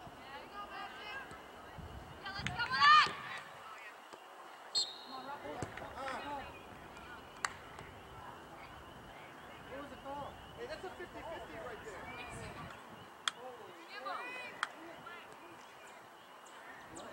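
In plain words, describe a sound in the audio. Young women shout and call to each other outdoors at a distance.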